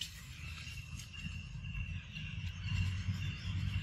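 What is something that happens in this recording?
A macaque chews wetly on a ripe mango.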